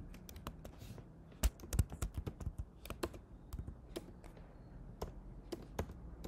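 Keys clatter as someone types on a keyboard.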